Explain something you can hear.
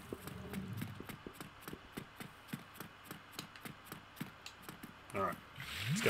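Quick footsteps thud on stone.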